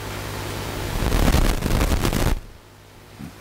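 A middle-aged man speaks briefly through a microphone.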